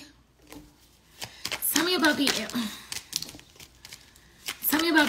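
Paper money rustles and crinkles in hands.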